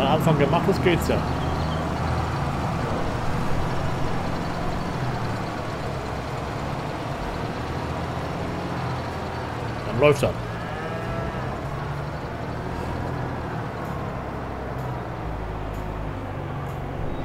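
A man talks casually into a microphone.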